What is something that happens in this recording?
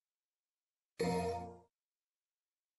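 A game menu plays a short confirming chime.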